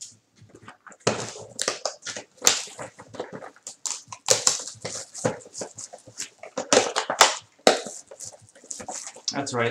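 Cardboard and plastic wrapping crinkle and rustle in someone's hands.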